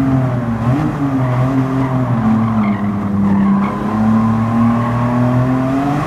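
Tyres squeal on tarmac as a car drifts.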